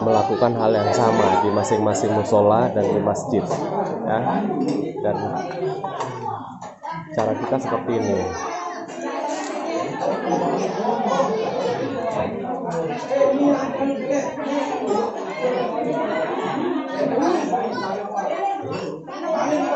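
A crowd of men and women chat at once, close by, in an echoing room.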